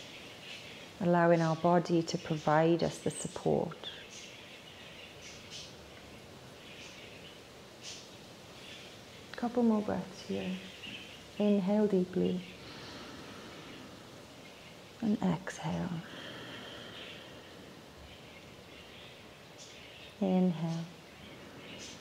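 A young woman speaks calmly and softly in short phrases, close by.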